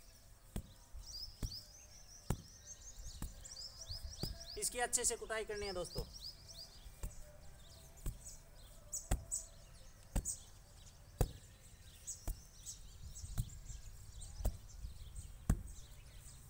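A brick scrapes and knocks against dry soil.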